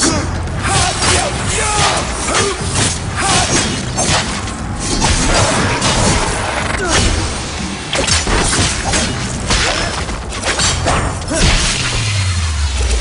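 Sword slashes and blows strike enemies in rapid bursts.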